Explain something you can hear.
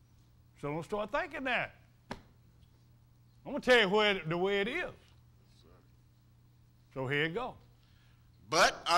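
An elderly man preaches slowly and emphatically into a microphone, with long pauses.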